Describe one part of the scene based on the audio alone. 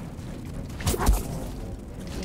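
A lightsaber clashes with a sharp crack.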